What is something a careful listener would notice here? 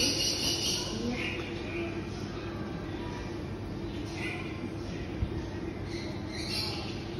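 A small dog's claws patter on a hard floor.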